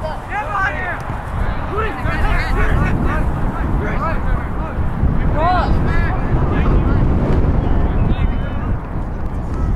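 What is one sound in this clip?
Wind rumbles against the microphone outdoors.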